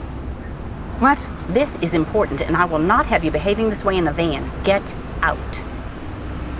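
A middle-aged woman answers calmly close by.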